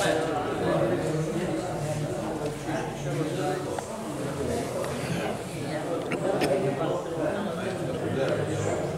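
Several men talk nearby in an echoing hall.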